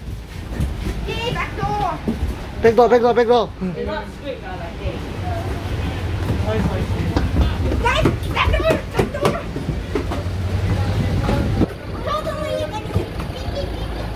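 A man and others talk nearby in short bursts.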